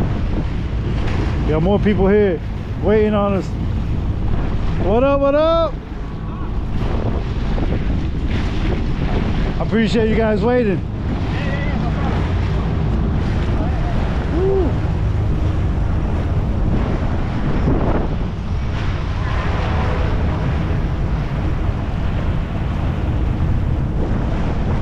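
Wind roars steadily across a microphone outdoors.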